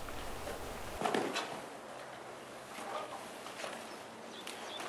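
Hooves thud on soft dirt as a horse walks.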